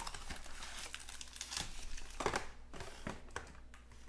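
Foil card packs crinkle and rustle as a hand moves them.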